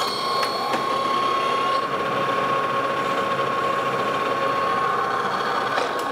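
A cutting tool scrapes against spinning metal.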